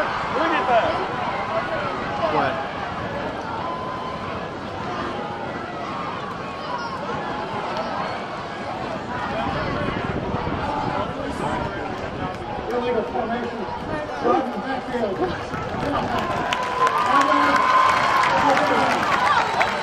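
A large crowd cheers and chatters in a big open stadium.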